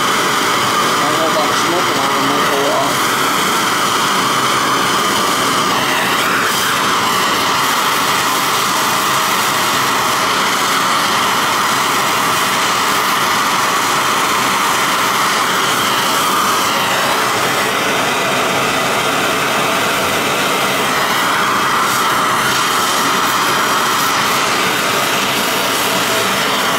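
A gas torch flame roars with a steady hiss.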